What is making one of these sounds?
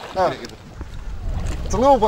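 Water splashes and churns as a fish thrashes at the surface.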